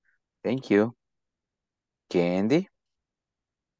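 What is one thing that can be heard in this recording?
A man speaks briefly through an online call.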